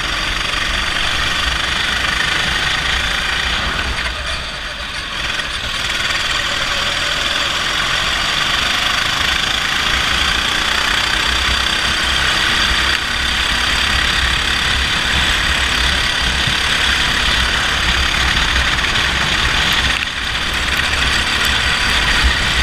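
A go-kart engine buzzes loudly up close.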